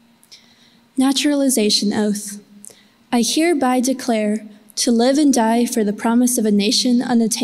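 A young woman reads aloud calmly through a microphone.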